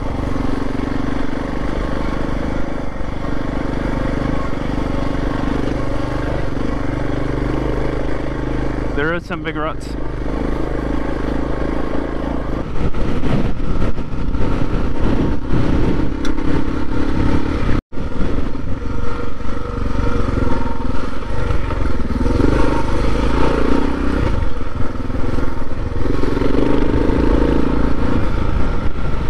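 Tyres rumble and crunch over a rough dirt track.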